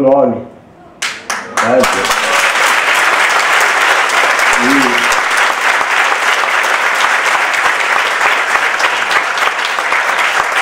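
A large audience applauds and cheers in a big hall.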